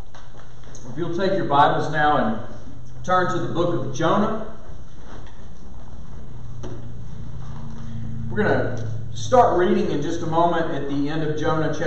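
A man speaks calmly into a microphone, heard in a small room with a light echo.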